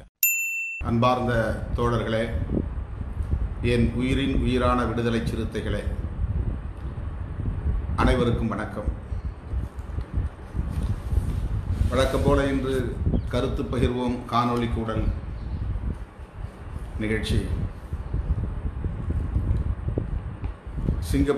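A middle-aged man speaks steadily and earnestly into a close microphone.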